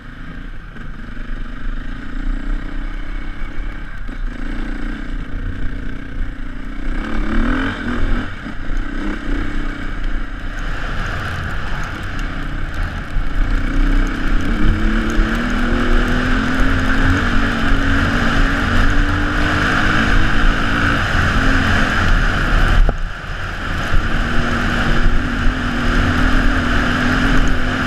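A motorbike engine revs and roars up close, rising and falling in pitch.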